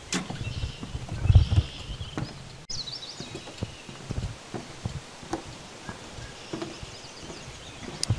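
Footsteps thud on a wooden boardwalk.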